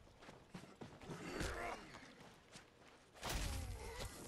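A man snarls and groans.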